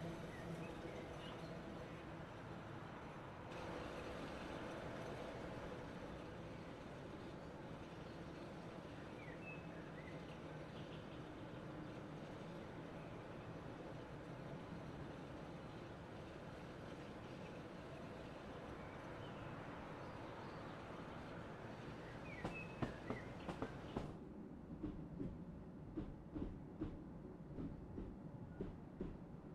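A train's electric motors hum steadily as it rolls along.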